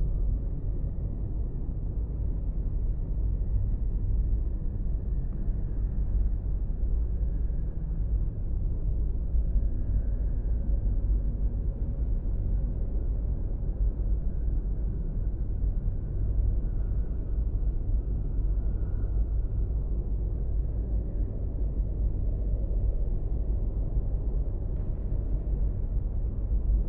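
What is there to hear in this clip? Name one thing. A spaceship's engine hums low and steady.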